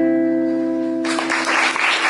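An electric guitar plays a few notes.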